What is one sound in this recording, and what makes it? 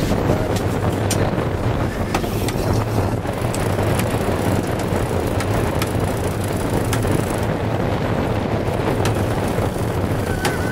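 Water rushes and splashes along a moving boat's hull.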